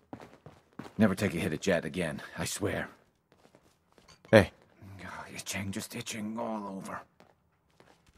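A young man speaks weakly and miserably, close by.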